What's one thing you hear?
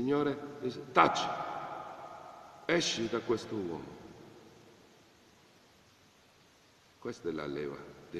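A middle-aged man speaks calmly and close to the microphone, in short phrases with pauses.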